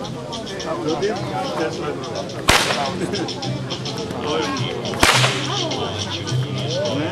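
Several men and women chatter in the background outdoors.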